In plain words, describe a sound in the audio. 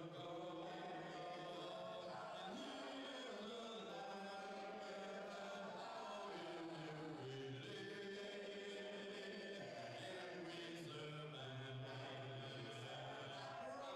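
A man shouts along with the singing through a microphone.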